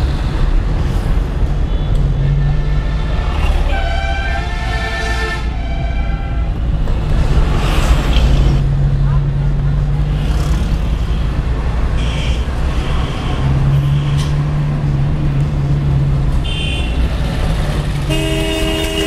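A vehicle engine rumbles steadily nearby.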